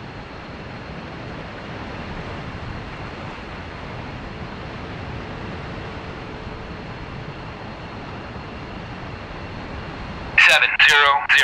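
A jet engine hums steadily, then cuts off.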